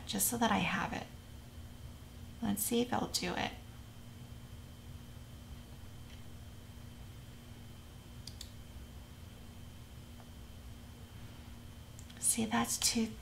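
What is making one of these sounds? A young woman talks calmly and closely into a microphone, in short bursts with pauses.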